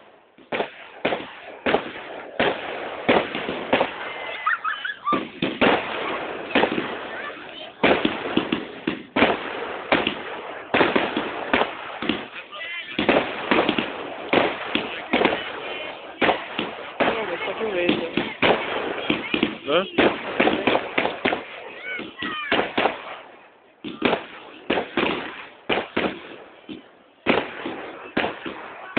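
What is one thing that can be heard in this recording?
Fireworks bang and crackle loudly overhead, outdoors.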